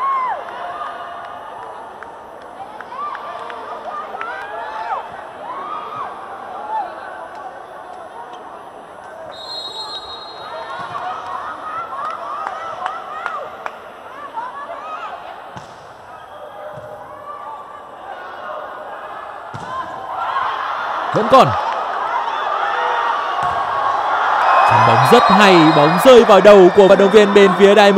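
A crowd in a large echoing hall cheers and chants.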